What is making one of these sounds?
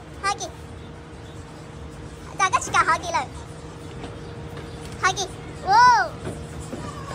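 A small child babbles and squeals excitedly close by.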